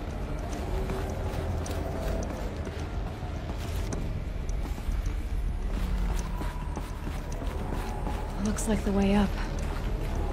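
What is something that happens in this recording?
Footsteps tread quickly across a hard floor.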